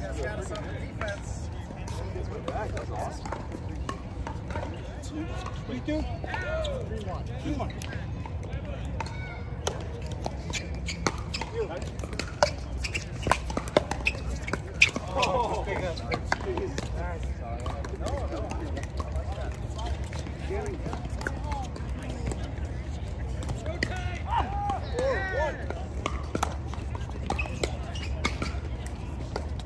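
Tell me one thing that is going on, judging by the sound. Paddles strike a plastic ball with sharp hollow pocks.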